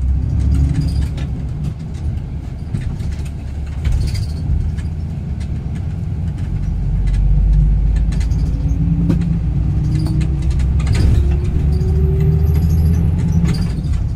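Cars pass by on the road outside.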